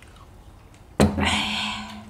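A woman lets out a loud sigh close by.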